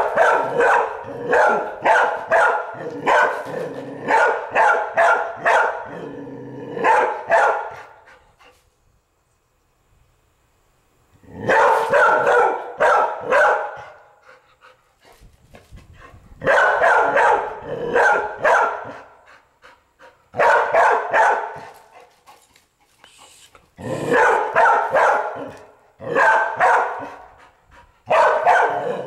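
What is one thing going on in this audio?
A dog barks loudly in quick bursts.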